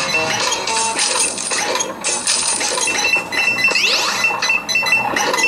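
Coins chime quickly as they are collected.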